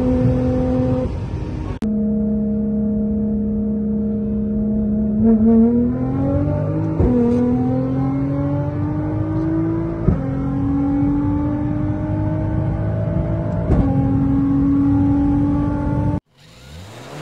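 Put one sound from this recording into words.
A sports car engine roars loudly at high revs, shifting up through the gears.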